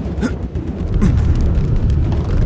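A video game fire blast whooshes.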